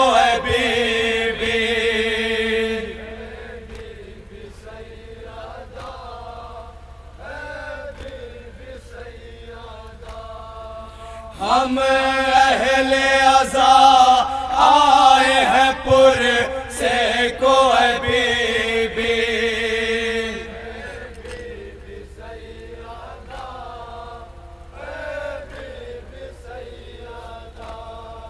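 A man sings a mournful lament loudly through a microphone.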